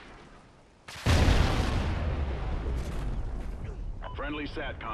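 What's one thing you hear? A loud blast booms close by and rumbles away.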